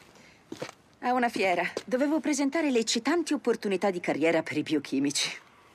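A young woman speaks with concern, close by.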